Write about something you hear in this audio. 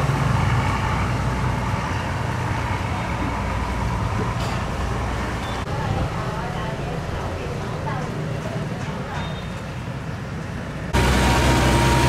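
Water churns and splashes against a boat's hull.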